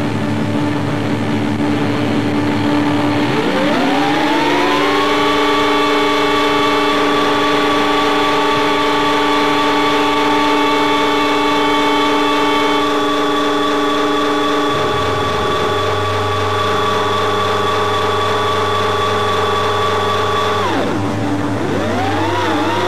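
A drum kit is played.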